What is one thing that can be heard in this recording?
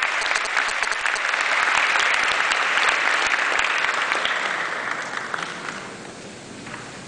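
A large audience applauds in a big echoing hall, and the applause fades away.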